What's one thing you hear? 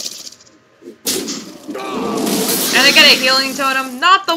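A magical blast crashes with a bright whoosh.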